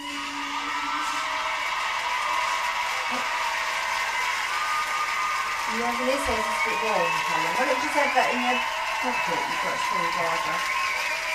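A large crowd cheers and screams.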